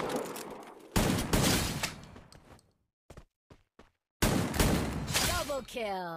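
A shotgun blasts loudly.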